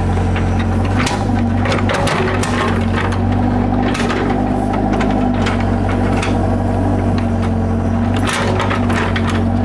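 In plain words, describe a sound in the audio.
An excavator bucket scrapes and knocks against dirt and stones.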